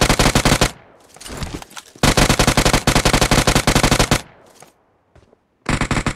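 An automatic rifle fires in rapid bursts.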